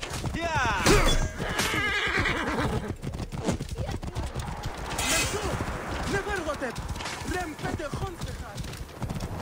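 Horse hooves thud steadily at a gallop on dry ground.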